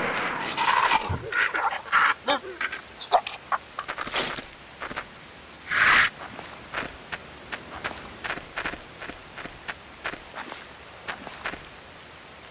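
Footsteps crunch over the ground at a walking pace.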